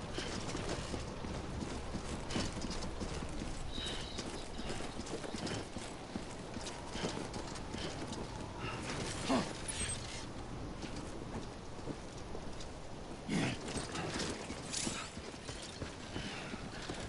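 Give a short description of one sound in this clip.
Footsteps run on hard pavement.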